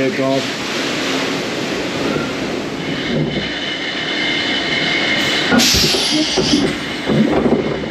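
Wind rushes past the moving car.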